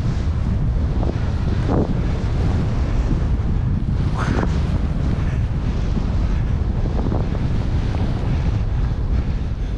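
Skis swish and hiss through deep powder snow.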